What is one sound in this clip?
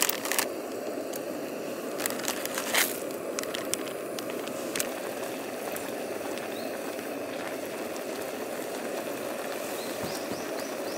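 Water bubbles and simmers steadily in a pot.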